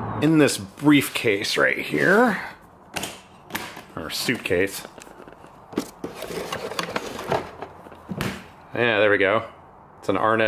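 Plastic parts click and knock as they are handled close by.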